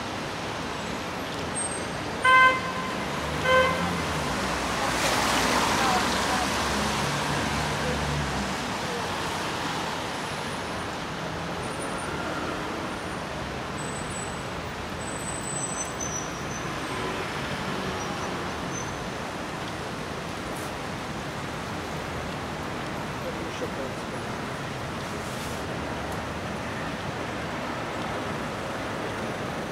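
A quiet city street hums steadily outdoors.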